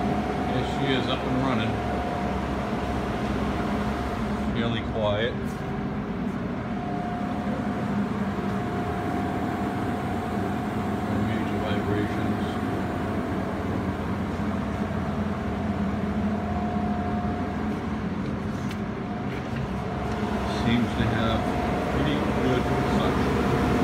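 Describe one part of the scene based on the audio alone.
An electric motor hums steadily with a loud, droning whir.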